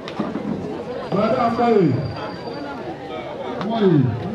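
A man speaks loudly to the crowd.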